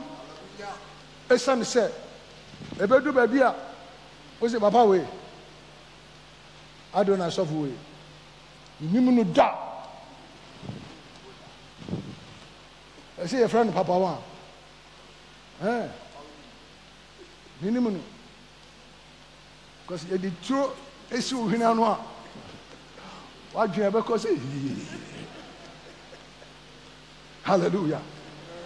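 A man preaches with animation through a headset microphone, in short bursts with pauses.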